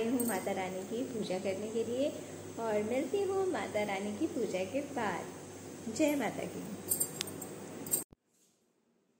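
A young woman speaks warmly and close up.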